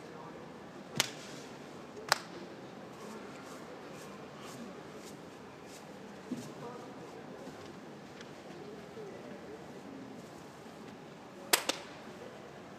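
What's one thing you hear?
A wrestler slaps his body with a sharp smack, a few times.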